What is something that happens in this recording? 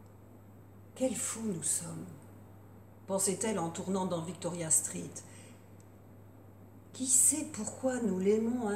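An older woman reads aloud calmly and expressively, close by.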